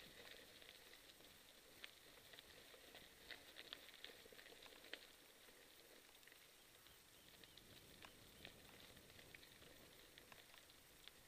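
Small stones click and pop under the bicycle tyres.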